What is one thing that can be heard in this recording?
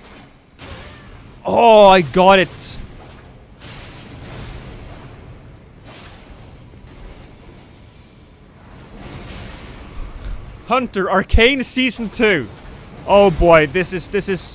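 Swords slash and strike with sharp hits.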